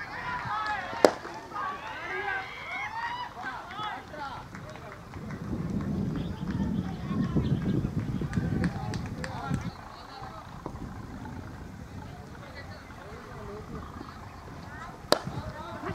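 A cricket bat sharply cracks against a ball.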